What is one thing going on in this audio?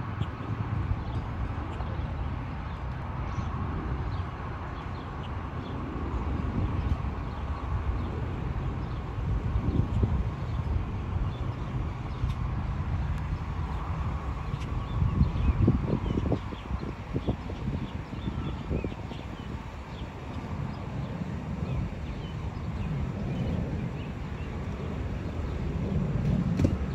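Jet planes roar far overhead in a low, steady rumble.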